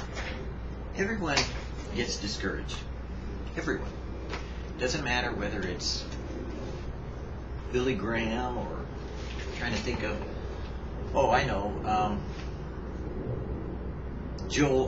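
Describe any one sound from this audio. A middle-aged man talks with animation close to the microphone.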